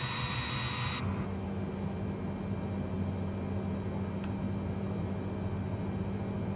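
A low steady hum fills a cockpit.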